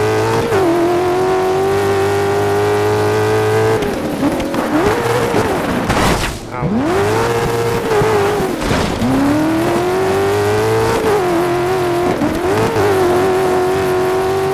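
A racing car engine roars loudly, its pitch rising and dropping with gear changes.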